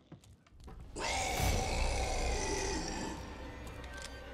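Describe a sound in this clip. A creature snarls and groans up close.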